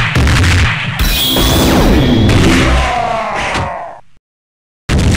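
A loud explosive blast booms.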